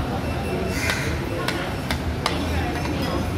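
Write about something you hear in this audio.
Metal cutlery clinks and scrapes against a plate.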